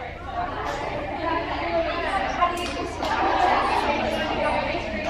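A crowd of girls and young women chatter and call out together in a large echoing hall.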